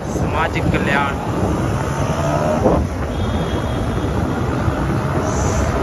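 A motorbike engine hums as it rides by nearby.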